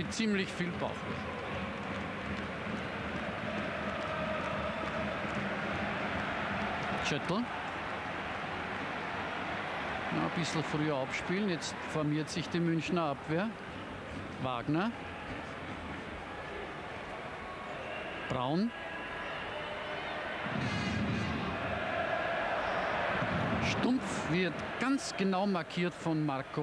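A large stadium crowd murmurs and chants steadily outdoors.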